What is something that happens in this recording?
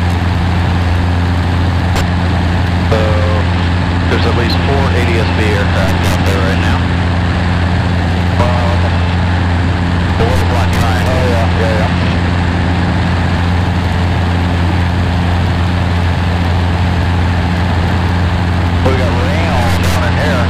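A small plane's propeller engine drones loudly and steadily.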